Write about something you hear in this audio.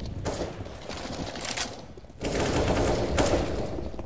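Rapid gunfire rings out in bursts.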